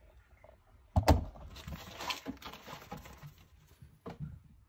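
Paper pages rustle as a notebook is turned.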